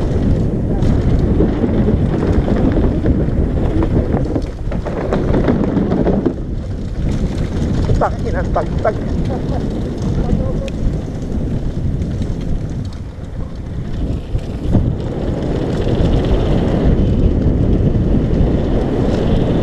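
Bicycle tyres crunch and rattle over a gravel trail.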